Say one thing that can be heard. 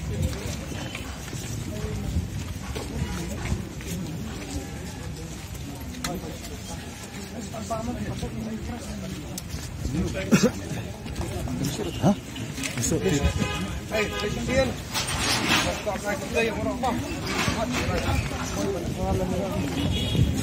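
A crowd of men talks all around, close by, outdoors.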